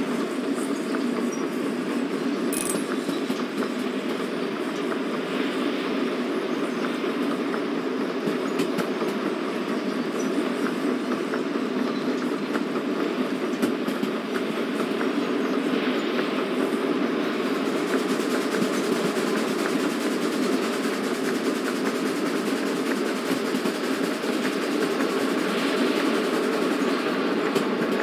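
A steam locomotive rumbles and clatters steadily along the rails.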